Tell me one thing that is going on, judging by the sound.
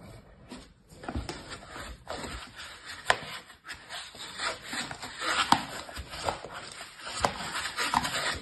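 A plastic rolling pin rolls over sand with a soft scraping.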